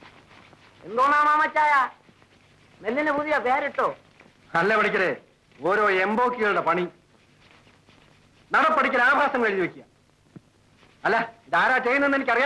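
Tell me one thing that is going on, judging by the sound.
A man speaks loudly with animation, nearby.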